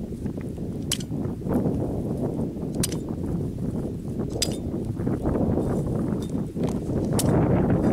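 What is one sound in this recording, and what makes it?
A blade stabs and scrapes into dry ground.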